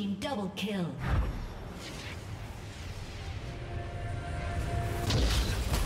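Deep thuds and whooshing game effects play.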